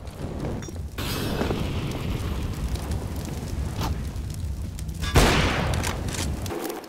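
A fire roars and crackles steadily.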